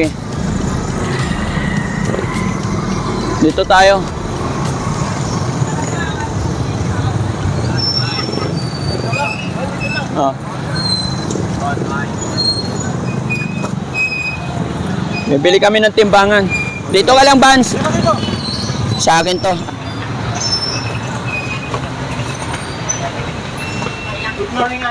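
Motor tricycles rumble along a busy street.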